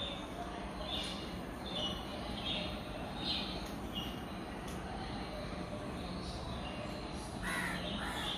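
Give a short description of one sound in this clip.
A dog sniffs at another dog in short, quick puffs.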